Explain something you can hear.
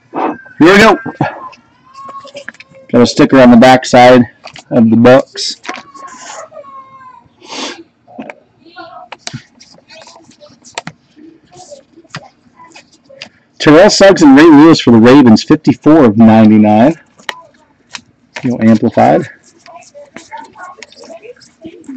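Stiff trading cards rustle and slide against each other.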